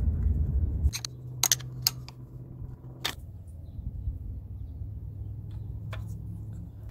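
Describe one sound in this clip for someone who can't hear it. Plastic and metal parts click and tap as they are handled up close.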